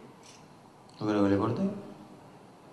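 A man speaks briefly through a microphone in a large room.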